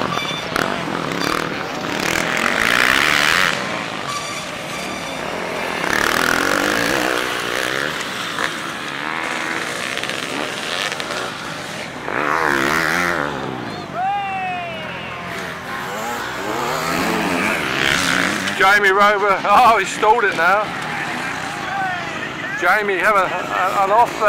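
Dirt bike engines rev and whine loudly as they race past.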